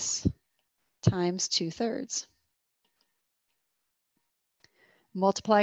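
A woman speaks calmly and clearly into a microphone, heard over an online call.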